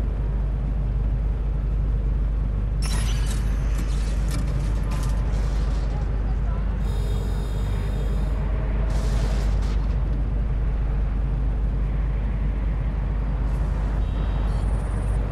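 A motorcycle engine rumbles steadily as it rides along.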